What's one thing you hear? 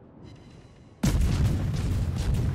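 Heavy guns boom in a loud, rumbling salvo.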